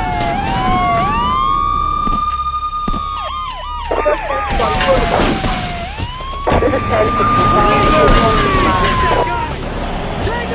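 A police siren wails and rises and falls.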